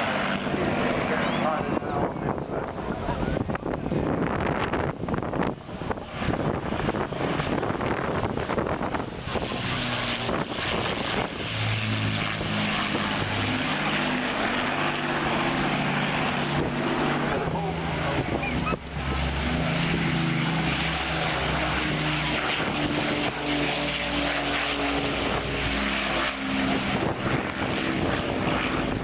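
Propeller engines of a large aircraft drone overhead, growing louder as it passes close by.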